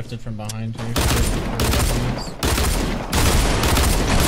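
Gunshots fire in loud rapid bursts.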